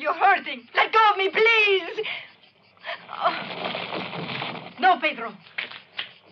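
A woman screams and cries out in distress nearby.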